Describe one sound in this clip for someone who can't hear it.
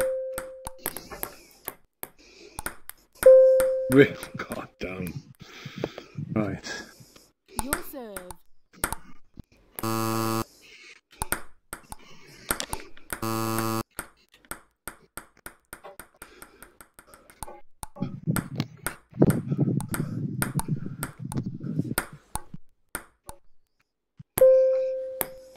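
A table tennis ball clicks sharply against paddles and a table in a quick back-and-forth rally.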